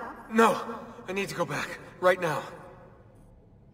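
A young man answers firmly, close by.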